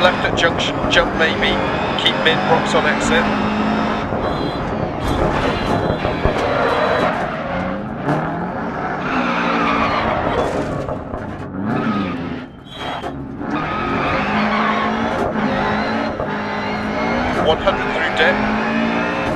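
A rally car engine revs hard and shifts gears.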